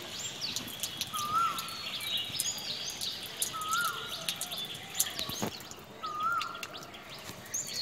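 Water drips and splashes onto a hard floor.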